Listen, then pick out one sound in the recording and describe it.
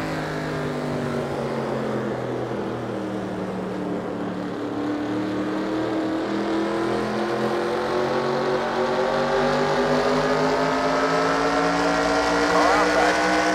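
A race car engine roars steadily and slowly rises in pitch as the car speeds up.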